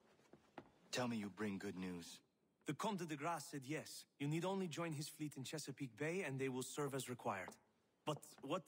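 An older man speaks earnestly, close by.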